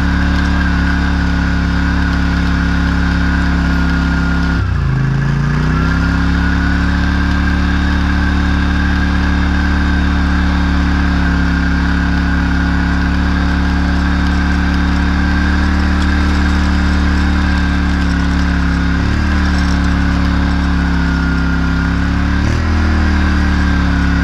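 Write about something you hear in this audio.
A harrow's metal tines rattle and scrape through soil.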